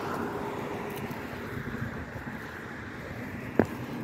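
A car drives along the road at a distance.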